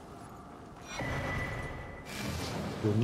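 A short game chime rings as an item is picked up.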